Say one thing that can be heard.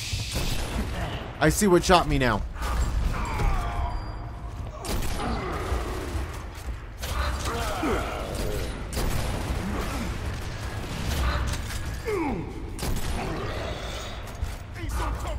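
Rifle gunfire rattles in bursts.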